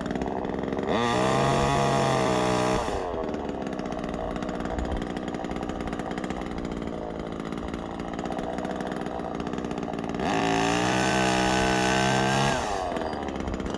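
A chainsaw revs in short bursts up in a tree.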